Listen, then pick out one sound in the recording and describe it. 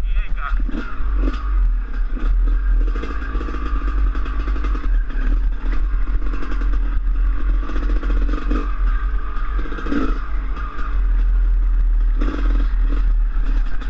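Tyres crunch and bump over a dirt trail.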